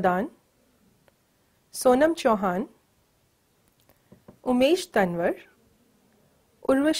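A woman reads out over a microphone, with short pauses between phrases.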